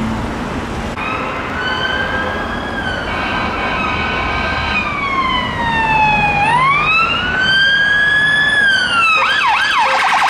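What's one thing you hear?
A police siren wails, rising and falling, drawing near.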